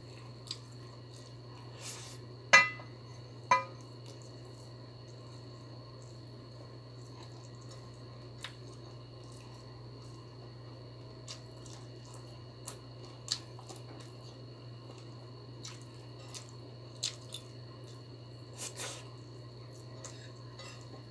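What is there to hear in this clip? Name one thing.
Fingers scrape and tap against a plate.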